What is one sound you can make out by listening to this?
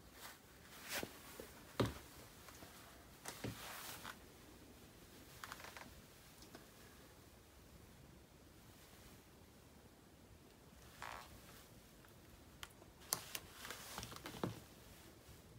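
Boot heels knock on a wooden floor.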